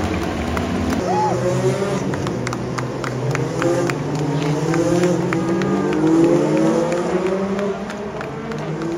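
Racing cars roar past with rising, whining engines.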